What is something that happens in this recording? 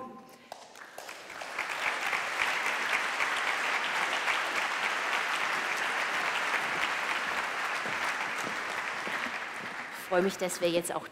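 A large audience applauds in a big hall.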